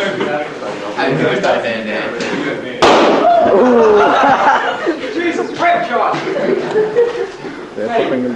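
A teenage boy talks casually, close by.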